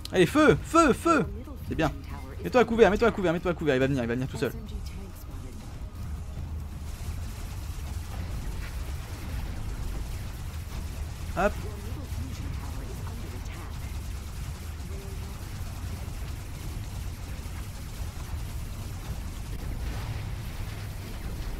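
Wind rumbles low and steady.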